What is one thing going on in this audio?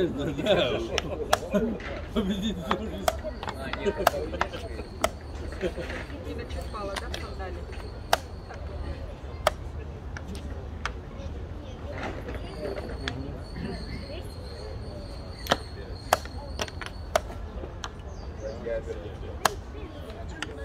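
A chess clock's buttons are tapped with sharp clicks.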